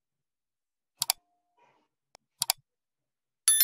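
Sharp clicks sound twice.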